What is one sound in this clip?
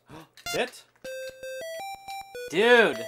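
A video game plays a short jingle of rising beeping tones.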